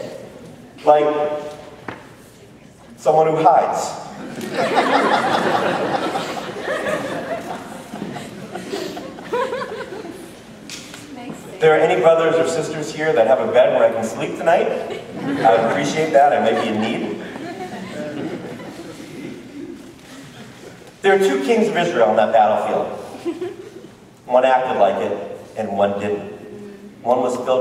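A man speaks with animation, heard in a room with some echo.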